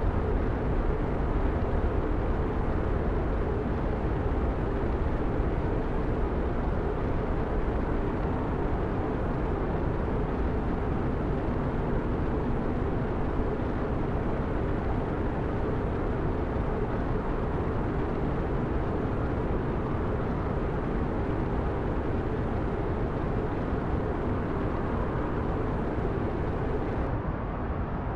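A deep, steady roar of rushing fire booms and rumbles.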